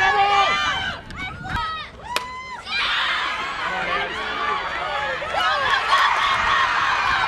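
Spectators cheer and shout loudly outdoors.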